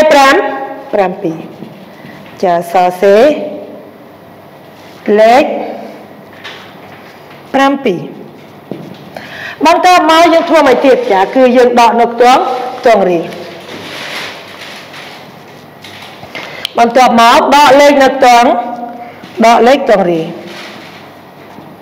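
A young woman speaks calmly in short phrases close to a microphone.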